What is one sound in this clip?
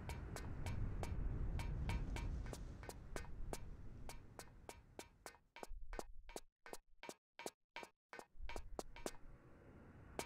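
Footsteps patter quickly on a metal floor.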